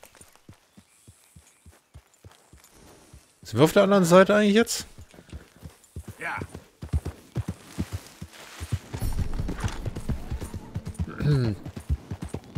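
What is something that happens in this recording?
A horse's hooves thud steadily on grassy ground.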